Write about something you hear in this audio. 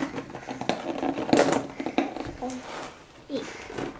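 A cardboard box rattles and scrapes on a table.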